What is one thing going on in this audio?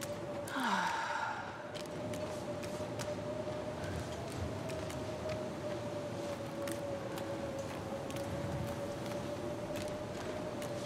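A strong wind howls steadily in a snowstorm.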